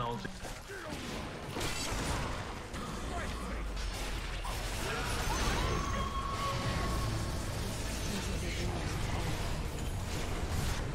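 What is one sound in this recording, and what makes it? Game spell blasts and clashes crackle and boom.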